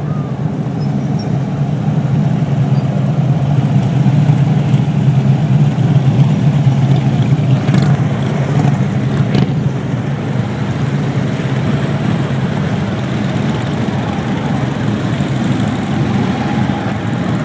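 V-twin police motorcycles rumble past at low speed.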